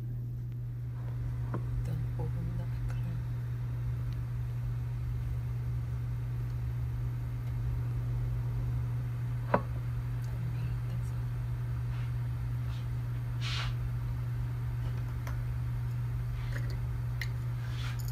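Water bubbles and boils steadily in a pot.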